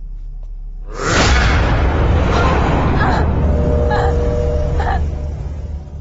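A young woman screams in terror.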